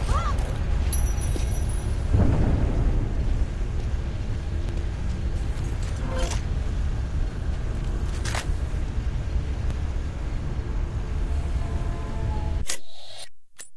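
A low, steady rumble drones.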